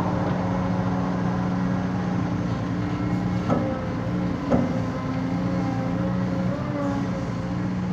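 An excavator bucket scrapes and digs into loose soil.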